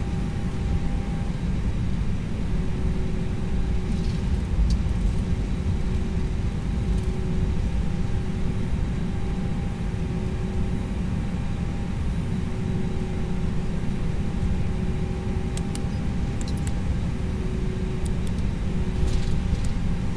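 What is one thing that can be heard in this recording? Jet engines hum steadily with a low rumble as an airliner taxis.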